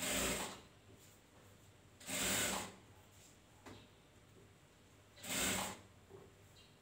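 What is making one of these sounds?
A sewing machine whirs in short bursts.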